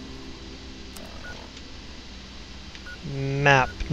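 A handheld device clicks and beeps as its menu opens.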